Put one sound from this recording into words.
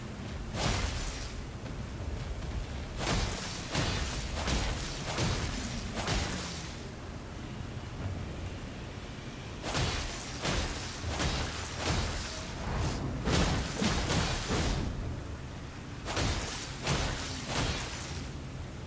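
A sword swings and slashes again and again with sharp whooshing hits.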